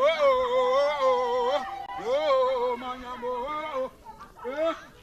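A man shouts loudly and at length close by.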